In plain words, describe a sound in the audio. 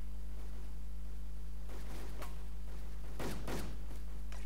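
Footsteps approach on a hard floor.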